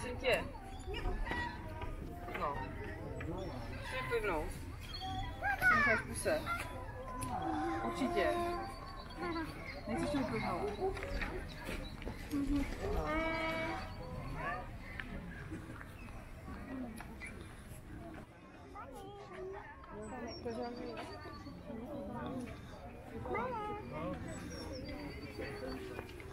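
Children and adults chatter nearby outdoors.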